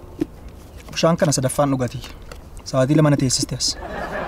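A man speaks calmly up close.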